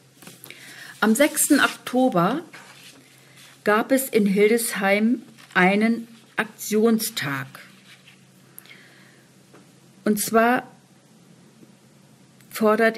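A woman speaks calmly in pauses, heard as if through a radio microphone.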